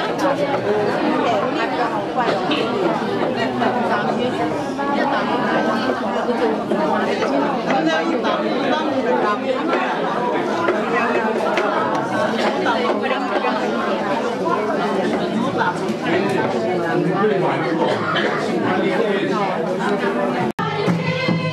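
A crowd of men and women chatter all around, close by.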